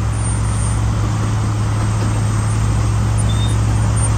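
Mulch pours and slides off a loader bucket onto a pile.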